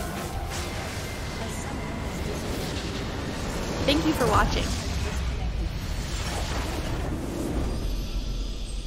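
Spell effects crash and burst in a fight.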